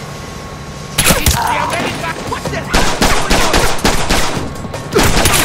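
Pistol shots crack in quick bursts.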